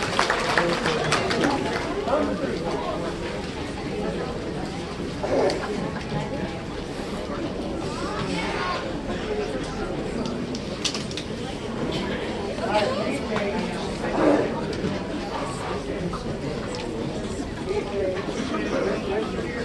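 A brass band plays a festive tune outdoors.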